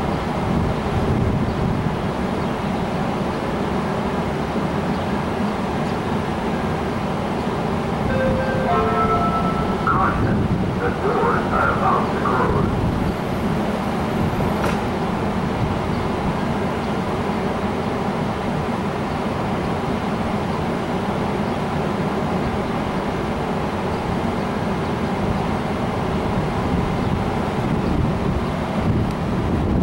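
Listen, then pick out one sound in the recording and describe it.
A train rumbles and clatters steadily along the tracks close by.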